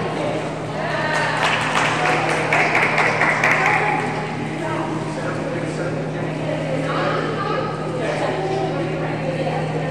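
A crowd of people talks and cheers in a large echoing hall.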